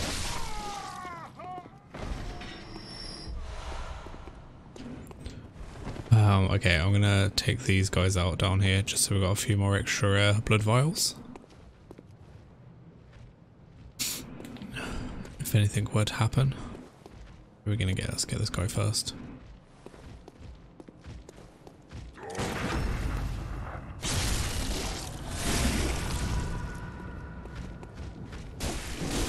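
A man talks casually and with animation into a close microphone.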